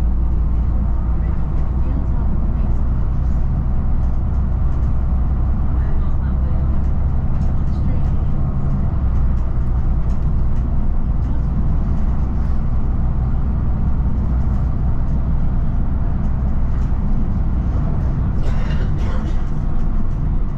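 Passing vehicles whoosh by in the opposite direction.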